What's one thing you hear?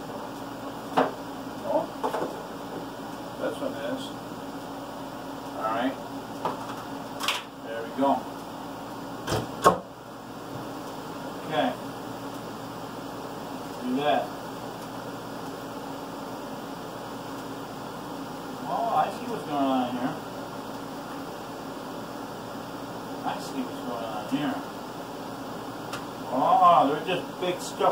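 Dishes clink and knock on a counter.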